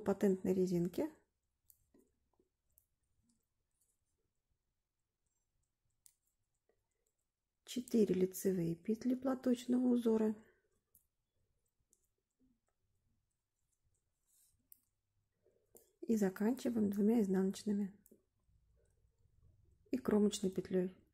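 Metal knitting needles click softly as they work stitches through yarn.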